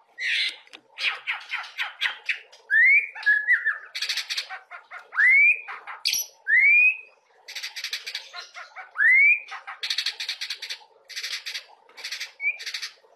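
A songbird sings loudly and close by, with rising whistles and fast chattering trills.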